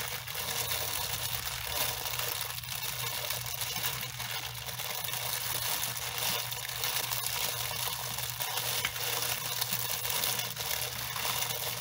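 Shower water sprays and splashes steadily.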